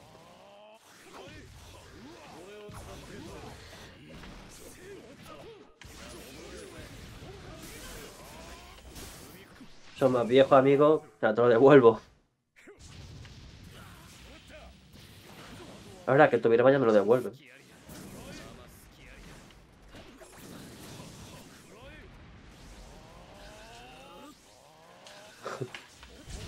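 Loud blasts and whooshes of fighting effects burst out in quick succession.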